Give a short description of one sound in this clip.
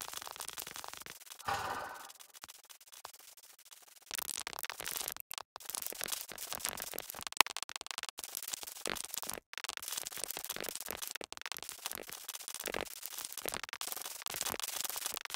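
Sand blocks crunch rapidly as they are dug away.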